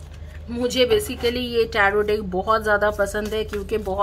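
Tarot cards are shuffled by hand with a soft riffling.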